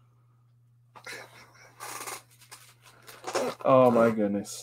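A plastic comic case rustles and taps in a man's hands.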